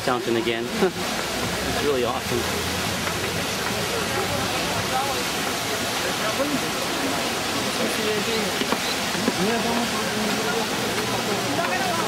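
Water from fountains splashes and hisses steadily outdoors.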